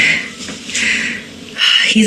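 A young woman laughs close to a phone microphone.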